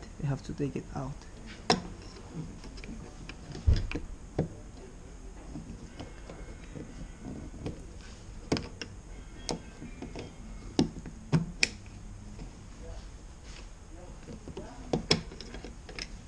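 Plastic clips click and snap as a screwdriver pries them loose.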